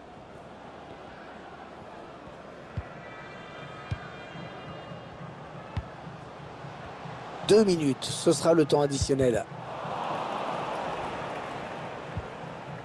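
A stadium crowd murmurs steadily and swells to a roar.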